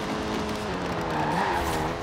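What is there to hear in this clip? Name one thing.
Tyres screech on the road through a bend.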